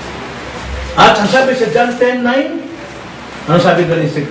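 An older man speaks into a microphone over a loudspeaker.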